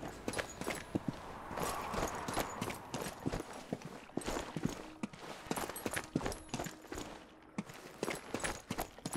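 Footsteps tread steadily across hard floors indoors.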